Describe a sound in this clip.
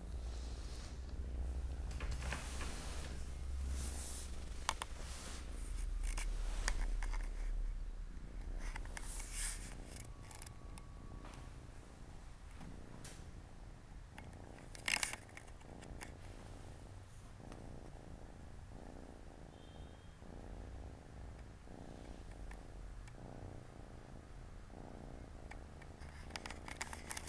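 A cat licks and grooms another cat's fur with soft wet rasping sounds.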